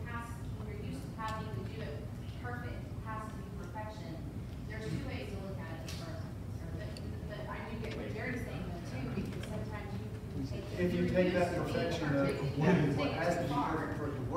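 A man speaks calmly to an audience in a large echoing hall.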